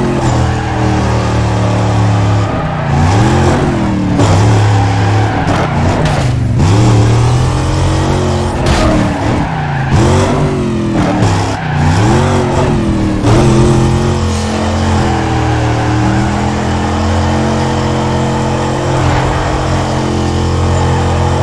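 A V8 muscle car engine roars, revving up and down while drifting.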